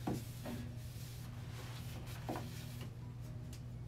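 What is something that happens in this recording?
Small objects knock lightly against a wooden shelf.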